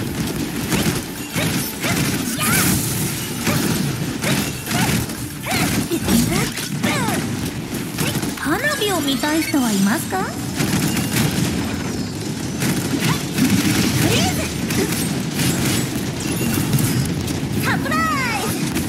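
Game sword strikes and blasts clash rapidly.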